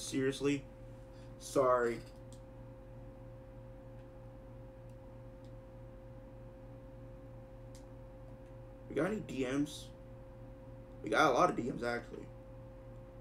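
A young man speaks in short bursts through a microphone.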